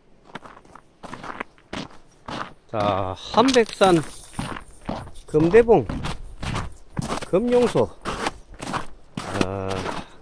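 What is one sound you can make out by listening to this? Footsteps crunch on ice and gravel.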